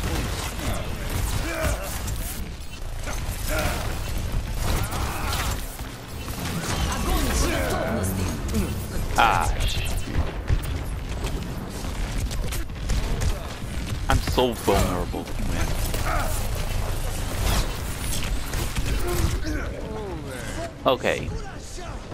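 Electronic game sound effects whoosh and zap.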